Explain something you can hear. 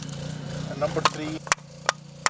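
Split firewood logs knock and clatter together as they are handled.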